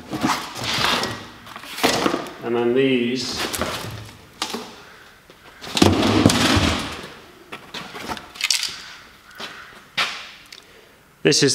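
A man rummages through a cardboard box with rustling and thumps.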